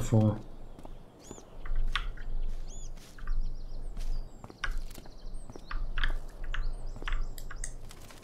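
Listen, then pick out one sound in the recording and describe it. A small bird chirps.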